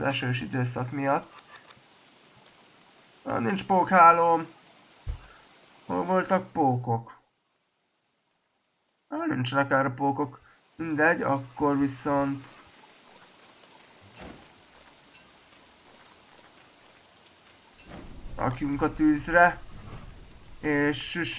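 A man talks casually and with animation into a close microphone, in short bursts.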